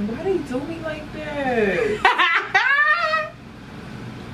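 A young woman laughs loudly and shrilly.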